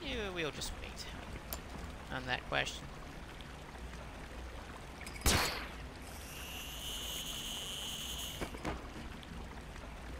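Water gushes from pipes into a channel.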